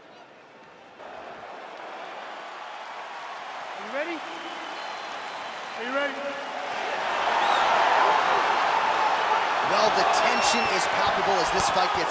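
A large crowd cheers and roars in a big arena, growing louder.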